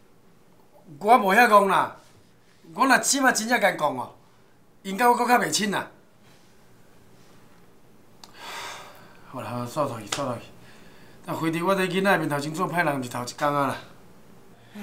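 A middle-aged man speaks quietly and earnestly up close.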